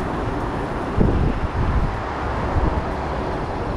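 A bicycle rattles over bumps in the path.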